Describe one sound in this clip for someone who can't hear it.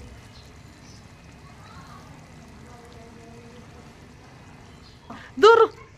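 Thick curry bubbles and simmers in a pan.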